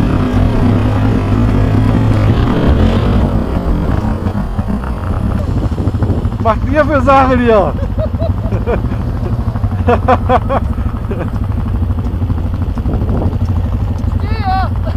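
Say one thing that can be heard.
A quad bike engine rumbles steadily close by.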